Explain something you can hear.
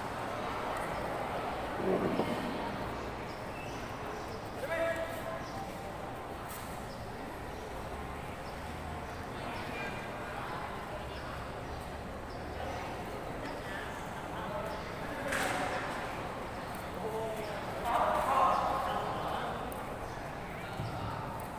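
Young men shout sharply while sparring in a large echoing hall.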